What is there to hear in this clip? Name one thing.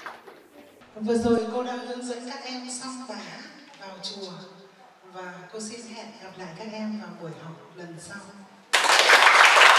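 A woman sings into a microphone, heard through loudspeakers.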